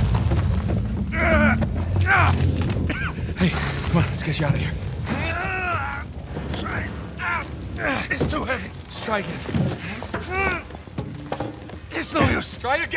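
Another man speaks urgently, close by.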